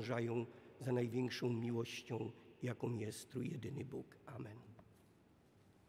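An elderly man chants in a sung voice through a microphone in a large echoing hall.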